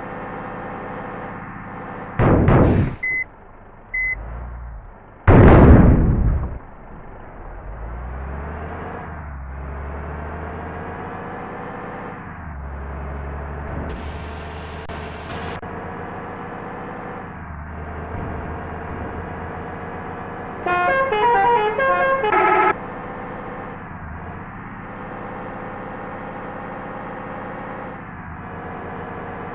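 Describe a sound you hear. A bus engine hums steadily, dropping briefly at each gear change and rising as the bus speeds up.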